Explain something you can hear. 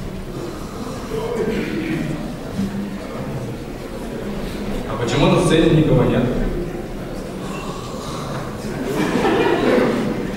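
A young man talks through a microphone in an echoing hall.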